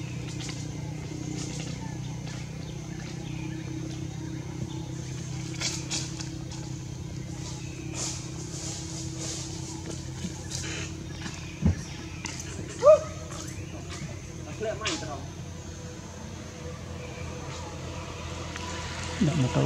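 Leaves and branches rustle as monkeys shift about in a tree.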